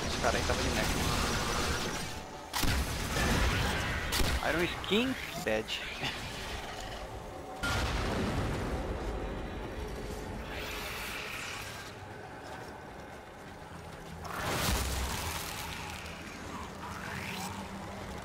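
Game weapons whoosh and crackle with electric blasts.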